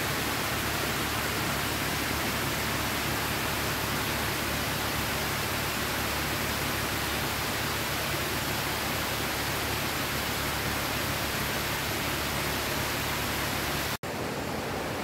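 A waterfall splashes steadily down a rock face close by.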